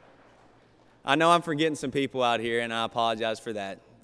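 A young man speaks calmly into a microphone in a large hall.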